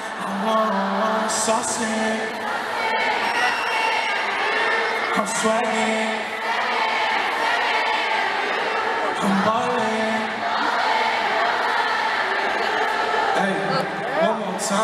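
A young man sings into a microphone, heard loud through speakers.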